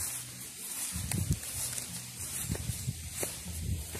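Footsteps crunch over grass and stones.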